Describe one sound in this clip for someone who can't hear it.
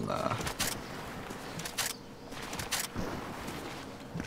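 A body slides and scrapes across the ground.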